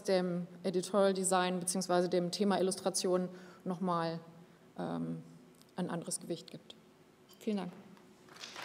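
A woman speaks calmly into a microphone through loudspeakers in a large hall.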